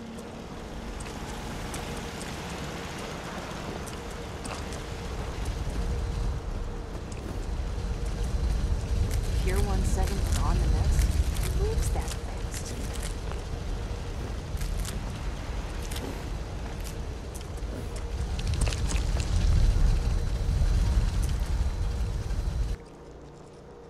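Footsteps thud on wooden boards and dirt.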